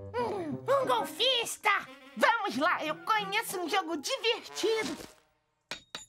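A cartoon gopher chatters in a squeaky, excited voice.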